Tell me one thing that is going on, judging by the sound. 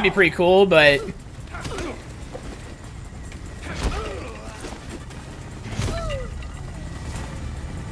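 Blows land with heavy thuds during a fight.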